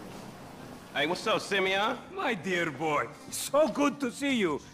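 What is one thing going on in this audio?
A middle-aged man speaks.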